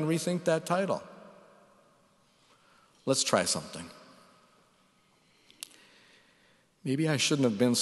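A middle-aged man speaks calmly into a microphone in a large echoing room, with pauses between phrases.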